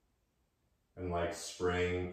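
A man speaks slowly and calmly nearby.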